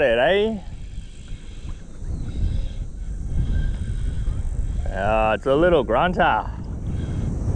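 A fishing reel's drag whines in short bursts.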